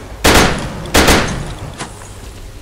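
A rifle fires two loud shots that echo away.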